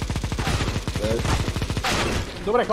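A man talks briefly into a close microphone.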